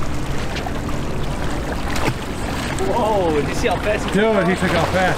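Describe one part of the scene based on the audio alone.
Small waves lap against rocks.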